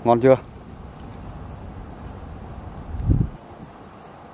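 A fish splashes in shallow water close by.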